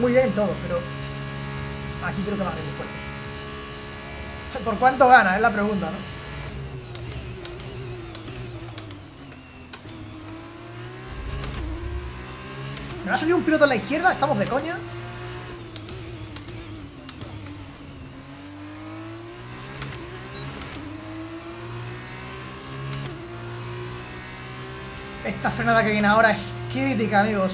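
A racing car engine whines, rising and falling in pitch as it shifts gears.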